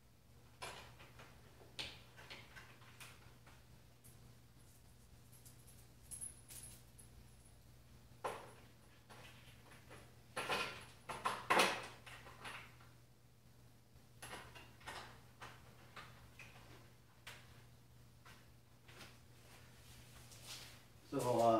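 Parts of a wooden frame knock and clatter as a man assembles them.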